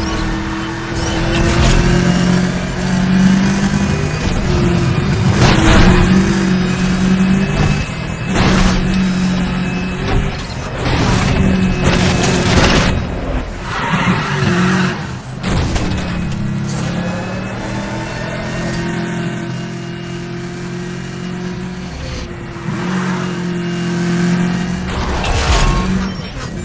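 A racing car engine roars at high speed, rising and falling in pitch as it shifts gears.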